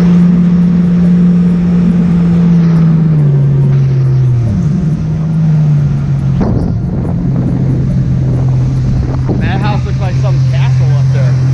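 A jet ski engine hums steadily and changes pitch as the throttle shifts.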